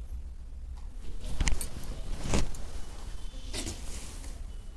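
Heavy fabric rustles as it is unfolded and handled.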